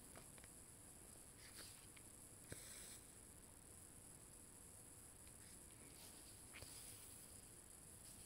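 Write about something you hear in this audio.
A needle pokes through stiff fabric and thread rasps softly as it is pulled through.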